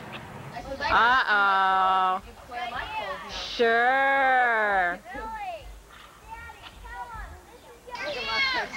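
A young child calls out loudly in a high voice.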